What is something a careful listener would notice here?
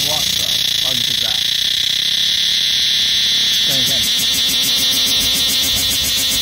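A cicada drones with a steady, shrill buzz.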